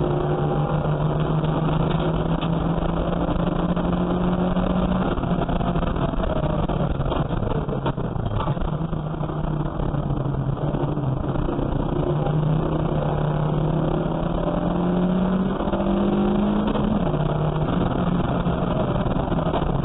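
A race car engine roars loudly from inside the cabin, rising and falling in pitch as it changes gear.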